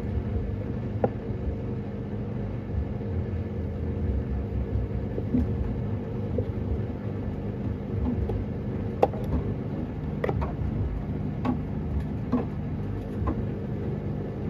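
Laundry thumps and clicks softly against the drum.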